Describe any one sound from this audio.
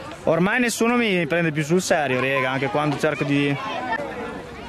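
Young women talk close by outdoors.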